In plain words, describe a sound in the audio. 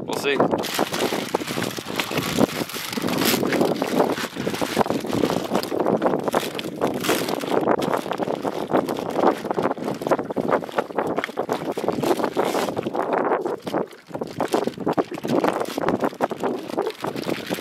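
A plastic bag crinkles in a man's hands.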